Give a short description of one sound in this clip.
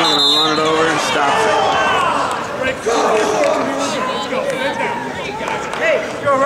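A large crowd cheers and shouts loudly in an echoing arena.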